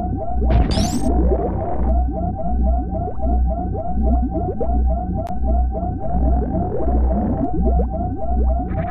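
An electronic warning tone beeps rapidly and steadily in a video game.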